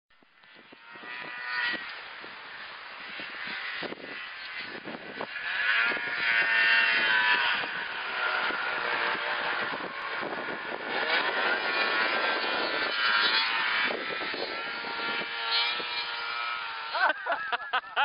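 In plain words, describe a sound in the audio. A snowmobile engine drones from afar, roars loudly as it passes close by, then fades into the distance.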